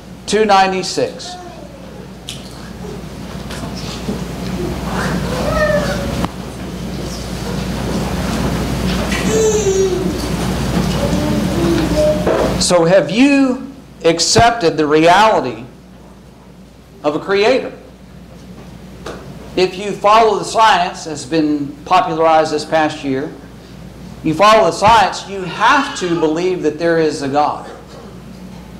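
A middle-aged man speaks steadily into a microphone, with pauses.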